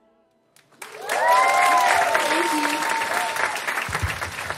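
An audience cheers and whoops.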